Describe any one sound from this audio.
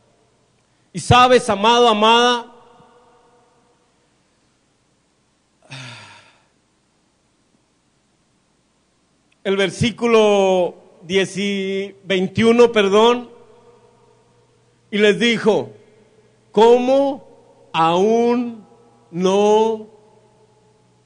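A man preaches with passion through a microphone and loudspeakers in a reverberant hall, in loud bursts with pauses.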